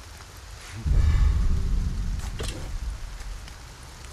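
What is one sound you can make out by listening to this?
A fire bursts with a loud whoosh.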